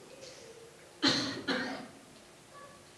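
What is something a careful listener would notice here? An elderly man coughs into a microphone.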